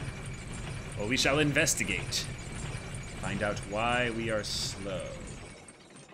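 A young man talks casually and closely into a microphone.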